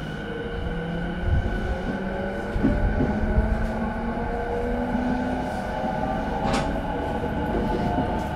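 An electric train hums steadily while idling in an echoing station.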